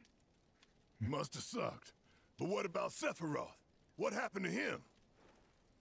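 A man with a deep voice speaks with some strain.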